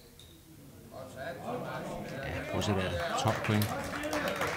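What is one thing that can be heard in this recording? A small audience applauds.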